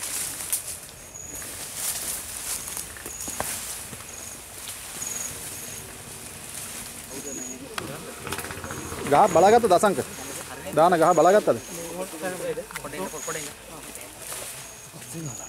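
Leaves and grass rustle as people push through undergrowth.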